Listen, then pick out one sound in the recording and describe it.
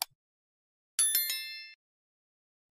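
A small bell chimes brightly and rings out.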